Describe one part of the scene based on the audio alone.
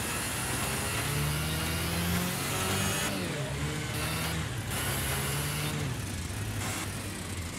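A kart engine buzzes steadily, with its pitch rising and falling with speed.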